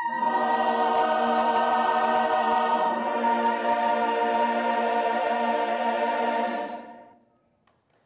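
A choir of young men and women sings together in harmony.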